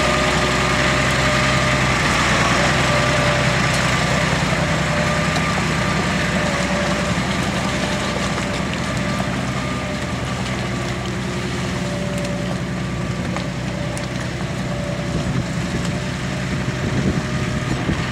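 A tractor engine drones steadily close by.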